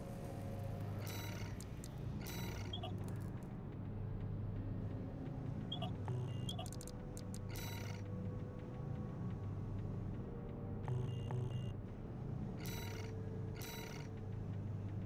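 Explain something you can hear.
Short electronic menu chimes sound as selections change.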